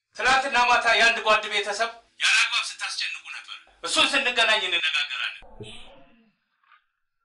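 A man speaks firmly into a telephone.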